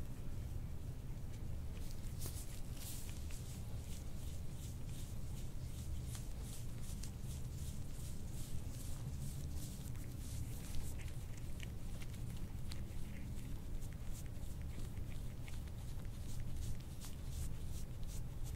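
A metal tool scrapes softly across skin.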